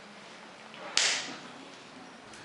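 Hands slap together in a high five.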